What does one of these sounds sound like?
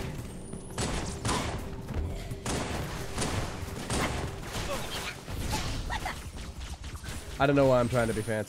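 Gunfire bursts and crackles rapidly.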